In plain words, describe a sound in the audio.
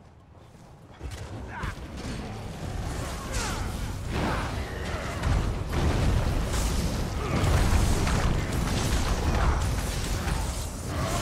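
Magic blasts and weapon hits crash and boom in a fierce fight.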